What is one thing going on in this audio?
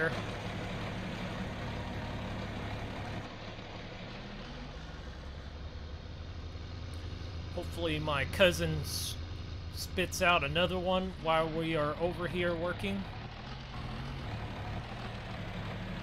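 A tractor engine chugs and rumbles steadily.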